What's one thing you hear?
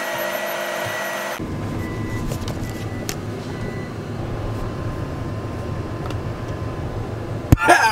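A heavy machine's engine drones steadily from inside the cab.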